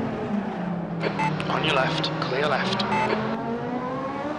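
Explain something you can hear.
Tyres screech loudly on the track as a car slides in a turn.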